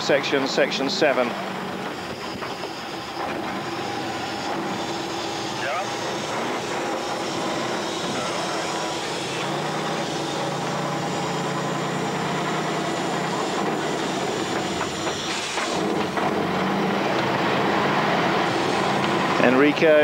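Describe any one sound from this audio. A heavy truck engine labours and roars as it climbs a grassy slope.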